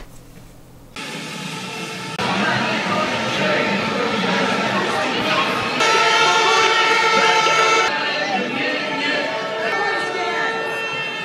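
A large crowd murmurs and chants outdoors.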